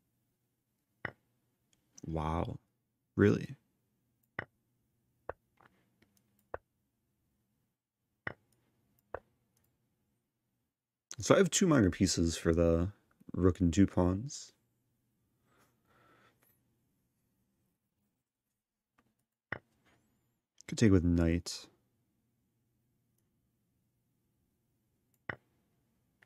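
Short sharp clicks sound as game pieces are moved.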